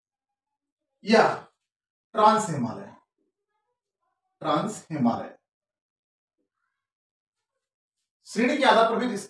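A man speaks in short bursts, explaining calmly and close to a microphone.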